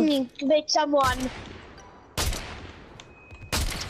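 A rifle fires loud single shots, each ringing out.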